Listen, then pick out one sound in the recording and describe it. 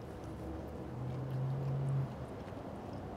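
A man murmurs an appreciative hum while eating.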